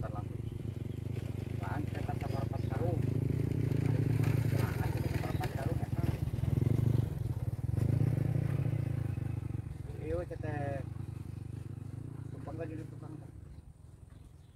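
A motorbike engine rumbles past on a road.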